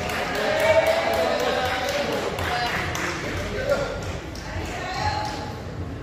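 Spectators nearby chatter.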